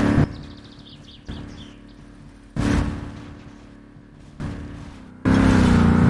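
A car tumbles and thuds heavily against the ground.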